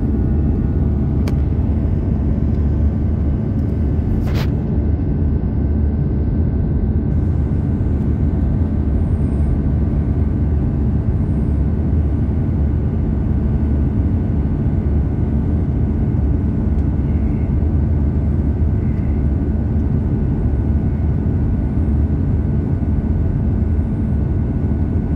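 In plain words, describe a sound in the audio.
A jet engine roars steadily from inside an airliner cabin.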